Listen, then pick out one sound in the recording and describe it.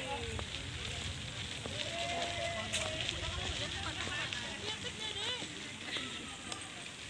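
Young women chat quietly in the distance.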